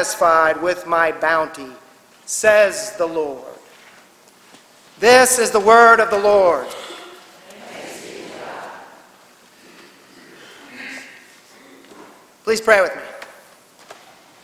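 An elderly man speaks slowly and calmly into a microphone in a large echoing hall.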